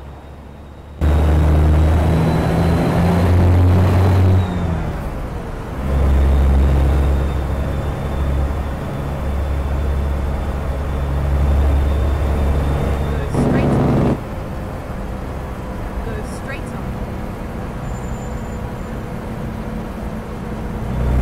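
A diesel semi-truck engine drones under load.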